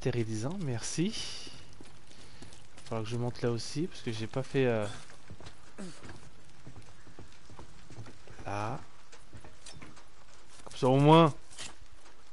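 A young man talks with animation into a headset microphone, close up.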